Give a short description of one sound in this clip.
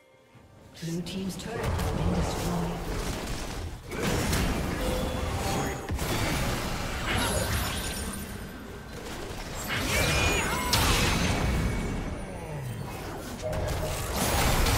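Video game hits thud and clash in quick bursts.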